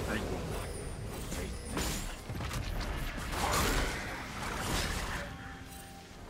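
Video game spell effects whoosh and crackle during a battle.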